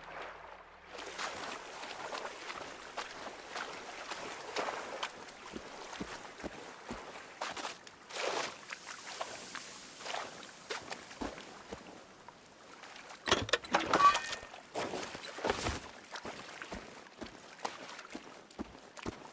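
Footsteps rustle through tall dry grass and reeds.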